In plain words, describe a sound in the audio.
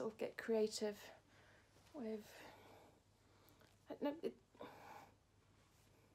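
Soft fabric rustles as a scarf is wrapped around a neck.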